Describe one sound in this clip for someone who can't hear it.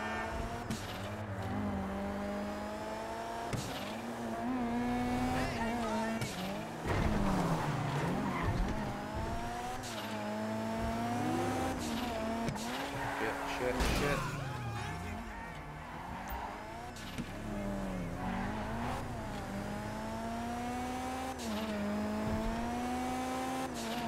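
A car engine revs up and down as it shifts through gears.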